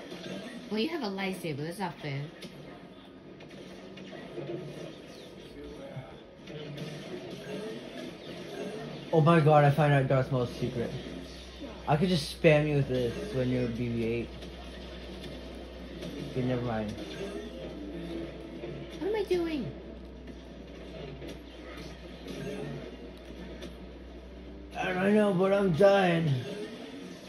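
Video game battle sounds play from a television speaker.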